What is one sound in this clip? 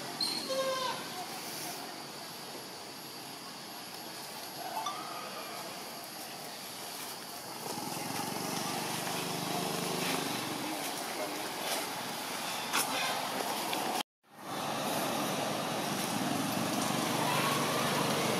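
A macaque's feet rustle over dry leaves.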